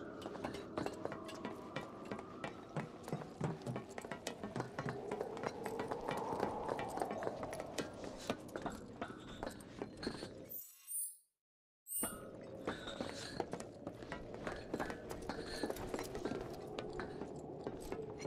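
Footsteps clang on metal.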